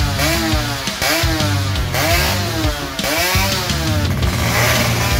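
A motorcycle engine revs sharply, over and over.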